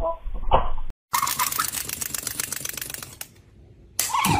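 A parrot squawks.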